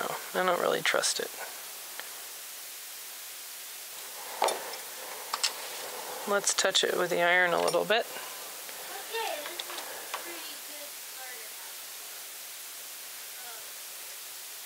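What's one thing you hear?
A man talks calmly into a nearby microphone, in short bursts with pauses.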